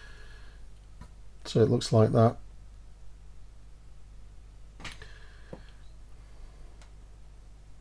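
Small metal tweezers click softly against tiny metal parts.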